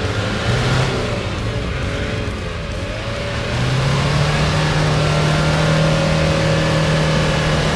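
Tyres churn through thick mud.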